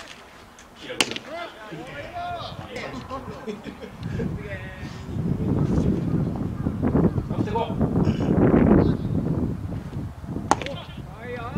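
A ball smacks sharply into a catcher's mitt outdoors.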